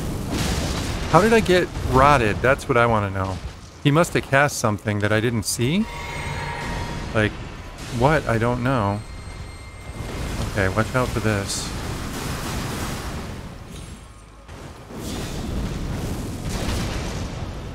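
A sword swings and strikes with a metallic clang.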